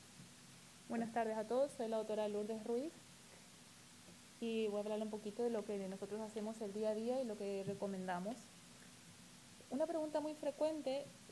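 A second woman speaks calmly through a microphone.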